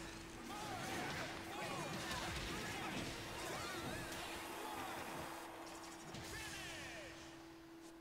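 Video game energy blasts whoosh and crackle.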